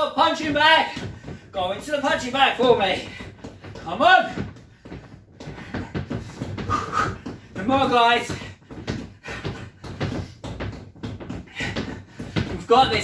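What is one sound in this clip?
Fists thump repeatedly against a padded punching dummy.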